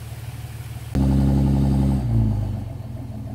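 A pickup truck's engine revs loudly as the truck pulls a trailer.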